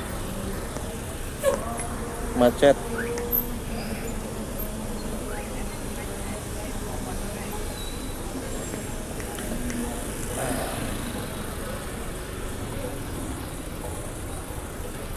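Motorbike engines idle and putter nearby.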